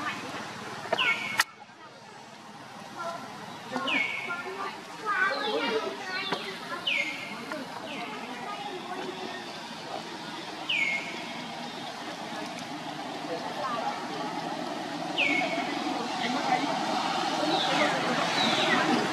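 A baby monkey squeaks in short, high cries.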